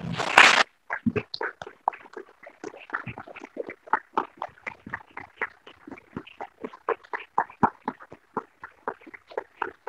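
A man claps his hands slowly.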